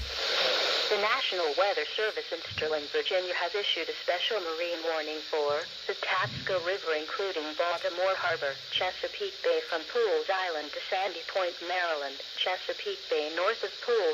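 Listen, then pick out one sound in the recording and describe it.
A man's voice reads out steadily through a small radio speaker.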